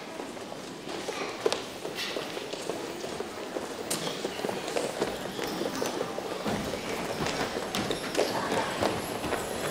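Children's footsteps patter across a hard floor.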